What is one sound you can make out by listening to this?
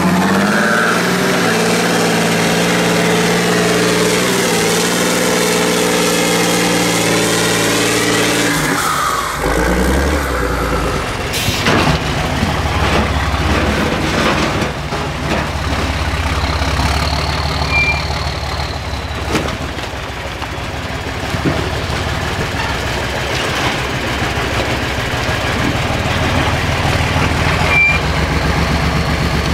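A heavy truck engine roars and revs loudly.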